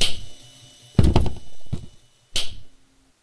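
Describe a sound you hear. A pair of swinging doors bangs open.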